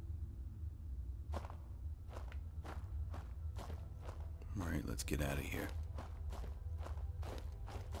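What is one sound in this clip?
Footsteps tread softly on rough ground.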